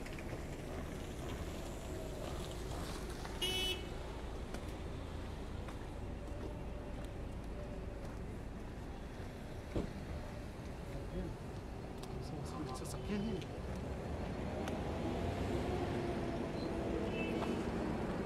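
Steady traffic rumbles outdoors.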